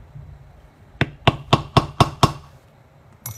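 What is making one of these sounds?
A mallet taps a metal tool several times in quick succession.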